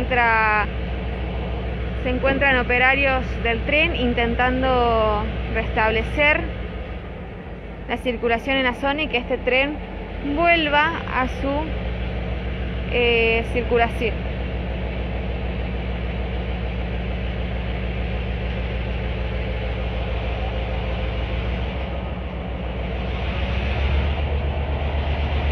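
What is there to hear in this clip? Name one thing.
A locomotive engine idles with a steady low rumble.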